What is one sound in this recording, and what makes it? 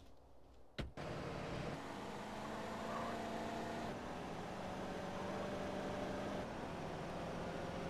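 A car engine drones steadily as the car drives.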